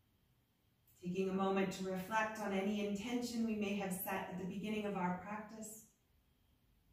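A woman speaks calmly and softly nearby.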